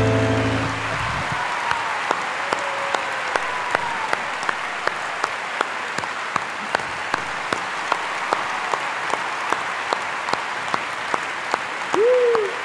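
A large audience applauds and cheers in a big hall.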